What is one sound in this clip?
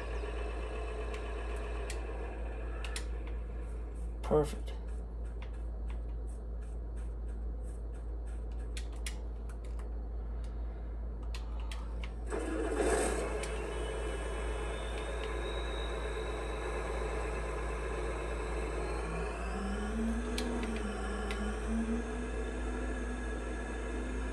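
A tractor engine hums steadily through a television speaker.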